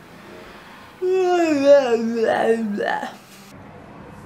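A young woman whines in a long, wavering moan close by.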